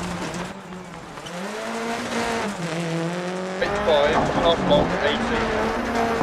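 A rally car engine roars and revs up and down.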